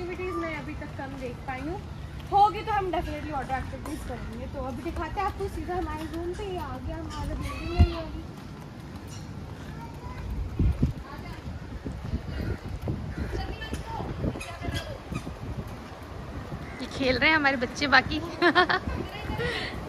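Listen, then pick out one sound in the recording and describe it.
A girl talks calmly, close by.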